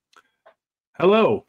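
A man speaks with animation through an online call.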